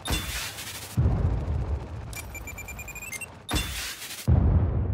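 An explosion booms with a deep, rolling rumble.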